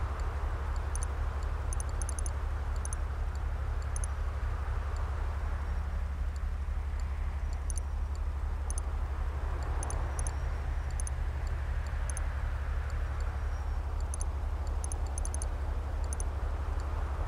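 Short interface clicks tick now and then.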